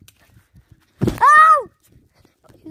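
A young boy shouts loudly close to the microphone.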